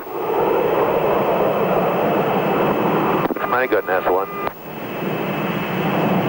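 Jet engines roar loudly overhead as a large plane flies past.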